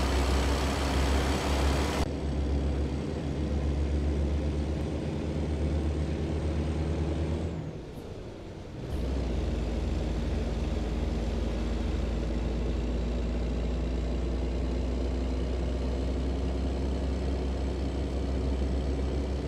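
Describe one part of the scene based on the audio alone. A heavy truck engine drones steadily, dipping briefly as it shifts gear.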